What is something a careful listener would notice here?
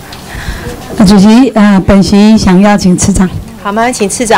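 A middle-aged woman speaks with animation into a handheld microphone.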